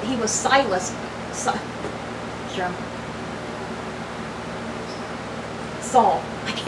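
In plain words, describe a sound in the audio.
A young woman talks close to the microphone, in short bursts with pauses.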